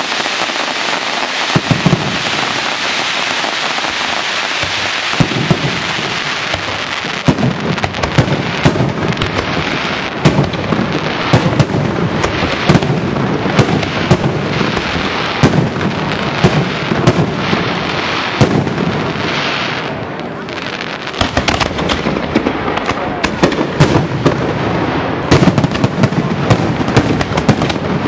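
Fireworks crackle and fizz steadily.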